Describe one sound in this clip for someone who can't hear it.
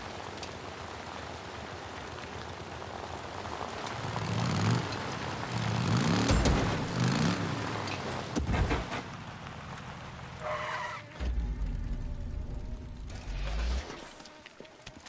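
A motorcycle engine rumbles and revs as the bike rides over rough ground.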